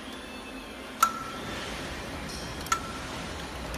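A metal lever on a manual labeling machine clicks as it is worked.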